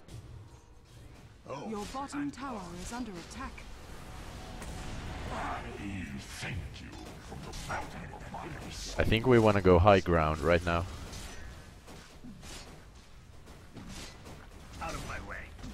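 Magic spells and weapon blows crackle and clash in a busy fight.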